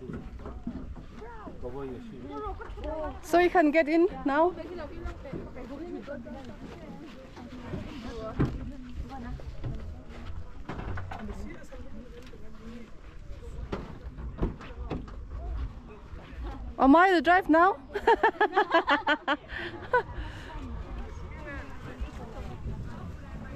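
Young women talk casually close by.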